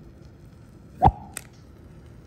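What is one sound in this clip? A lighter clicks.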